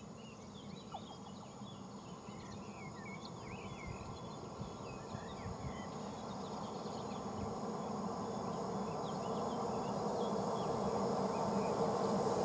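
A train approaches on the tracks, its rumble growing steadily louder.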